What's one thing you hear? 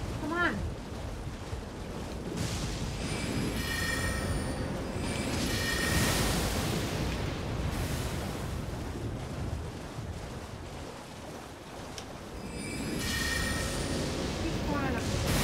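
A horse gallops, splashing through shallow water.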